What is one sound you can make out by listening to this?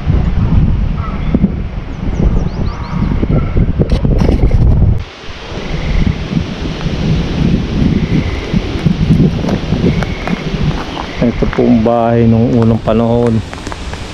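Strong wind rumbles and buffets outdoors.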